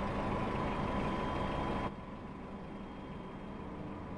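A forklift engine hums steadily.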